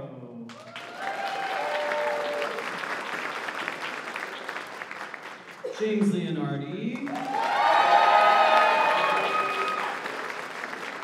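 Young people cheer and whoop.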